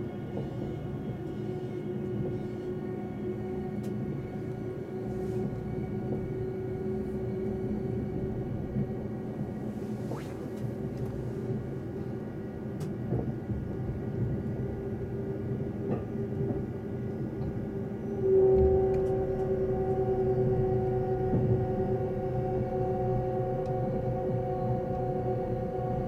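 A train hums and rumbles steadily along the tracks, heard from inside a carriage.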